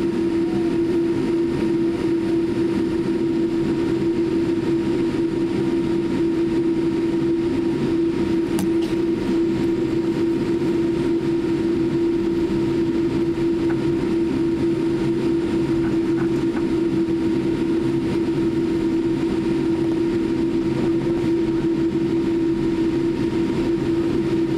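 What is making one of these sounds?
Jet engines hum steadily inside an airliner cabin.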